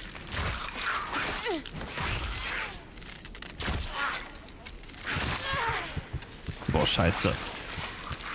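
A blade strikes flesh with heavy thuds.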